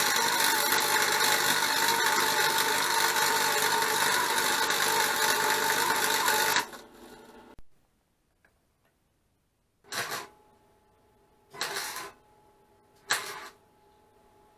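An arc welder crackles and sizzles loudly in short bursts.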